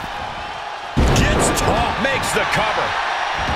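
Bodies slam hard onto a wrestling ring mat with a loud thud.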